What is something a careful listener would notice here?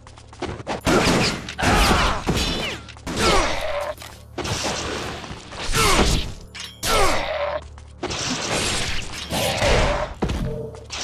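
Swords slash and clash in quick, loud bursts.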